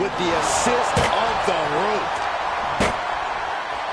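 Bodies slam with heavy thuds.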